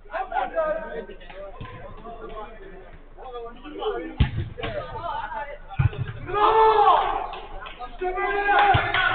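Men shout and call to each other across an outdoor pitch.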